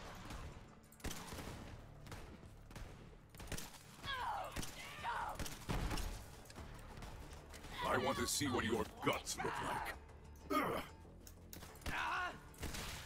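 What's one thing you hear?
Rifle shots crack in a game, one at a time.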